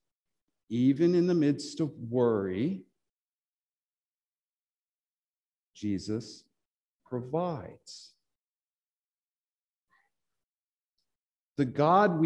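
A middle-aged man speaks calmly and expressively in short phrases, close by, with pauses.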